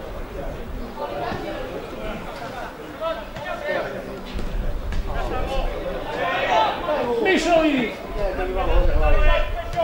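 Young men shout to one another outdoors, some way off.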